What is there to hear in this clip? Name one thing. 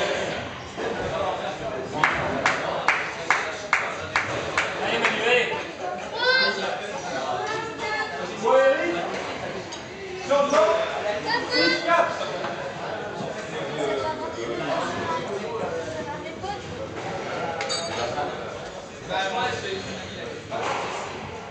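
A squash ball smacks against rackets and walls in an echoing court.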